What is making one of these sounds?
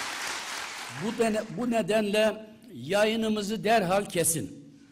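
An elderly man speaks forcefully into a microphone in a large hall.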